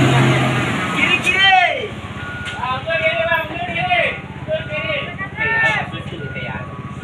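A man shouts directions outdoors.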